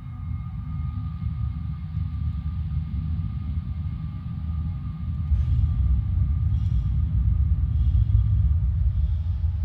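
A spacecraft engine rumbles low and steadily, growing louder.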